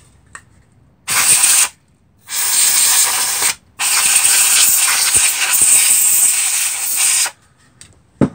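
An aerosol can sprays in loud hissing bursts.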